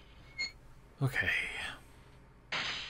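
A heavy metal gate door opens with a clank.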